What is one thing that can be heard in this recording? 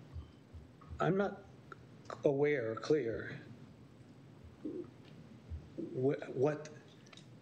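A middle-aged man speaks calmly into a microphone, with pauses.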